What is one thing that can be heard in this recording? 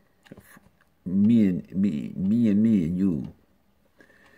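A middle-aged man speaks calmly and close, as if over an online call.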